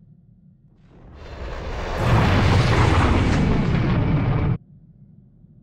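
A starship engine roars loudly.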